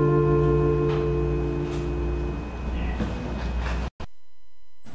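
An acoustic guitar is strummed and rings out.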